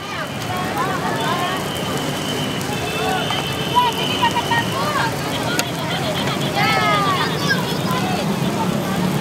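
Food sizzles steadily in hot pans.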